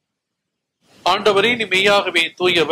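An elderly man speaks calmly and slowly through a microphone.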